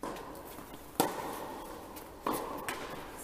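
A tennis ball is hit sharply with a racket in a large echoing hall.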